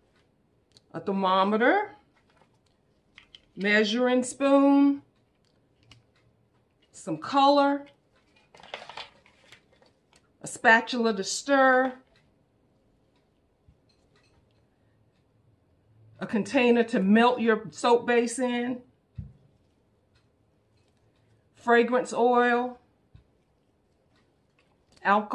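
A woman talks calmly close by, explaining in short phrases with pauses.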